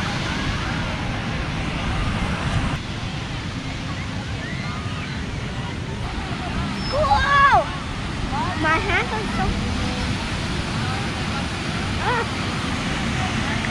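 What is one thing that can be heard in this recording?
Waves wash onto the shore steadily, with wind outdoors.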